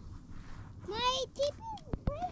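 A young child calls out in a high voice.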